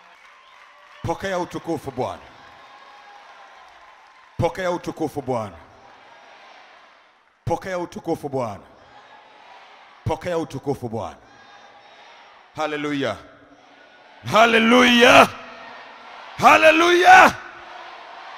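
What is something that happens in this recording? A man preaches forcefully into a microphone, heard through loudspeakers in a large echoing hall.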